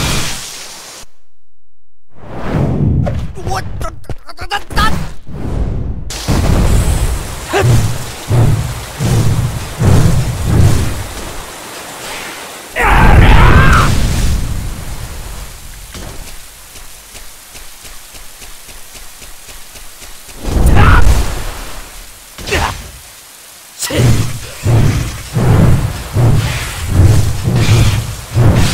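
A heavy sword slashes and thuds into bodies.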